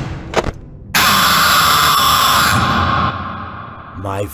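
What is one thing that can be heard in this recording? A loud harsh screech blares suddenly and then fades away.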